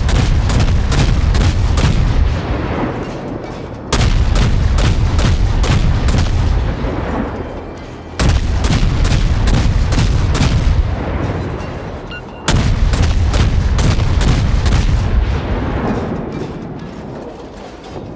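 Shells explode and splash into water.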